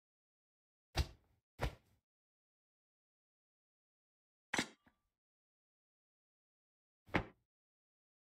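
Items clatter softly as they are picked up and dropped.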